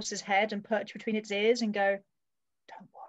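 A young woman speaks animatedly over an online call.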